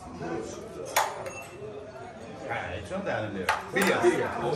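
Dominoes click on a board.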